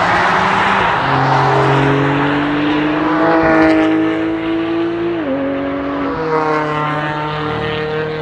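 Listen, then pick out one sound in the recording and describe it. Several car engines roar loudly as the cars speed past, shifting gears.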